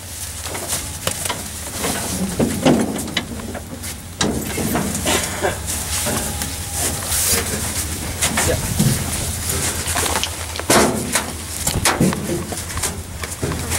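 Metal gates clank and rattle with knocks.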